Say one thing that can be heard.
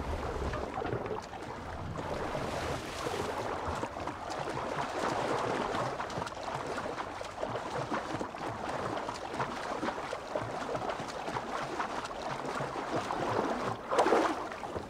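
Water splashes steadily as someone swims.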